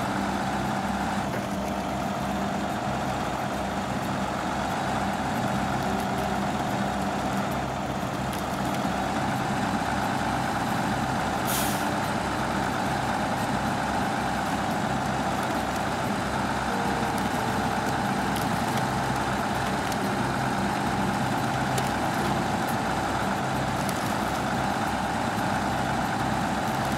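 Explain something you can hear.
Tyres crunch over snow.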